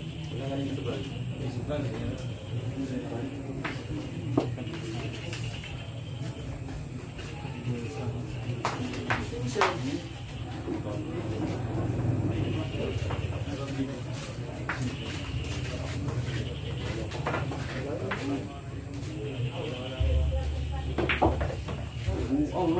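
A crowd of men chatters in the background.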